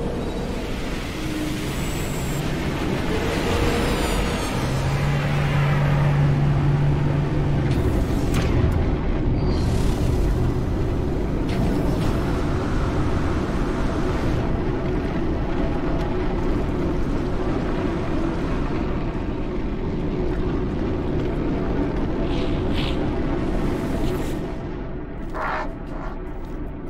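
A low rumbling drone fills a large space.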